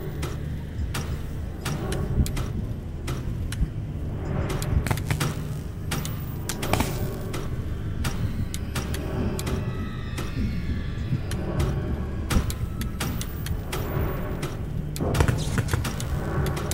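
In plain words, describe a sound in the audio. Metal puzzle pieces click as they are turned.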